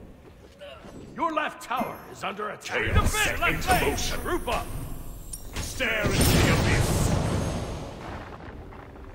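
Weapons clash and strike in a scuffle.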